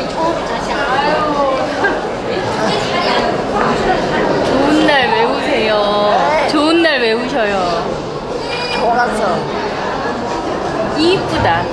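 An elderly woman speaks in a shaky, emotional voice close by.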